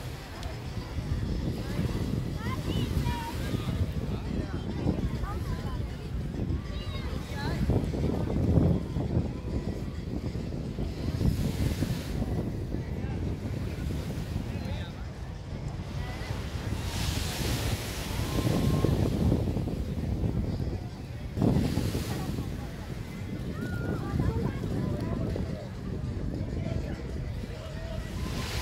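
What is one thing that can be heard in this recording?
Wind blusters outdoors.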